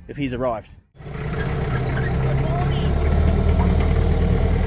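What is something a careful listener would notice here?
A small tractor engine rumbles steadily as it tows a trailer train.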